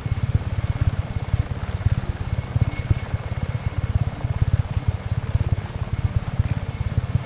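A helicopter's rotor blades thump rapidly and steadily.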